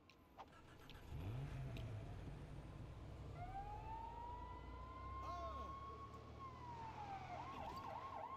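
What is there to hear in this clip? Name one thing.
A van engine revs and drives away.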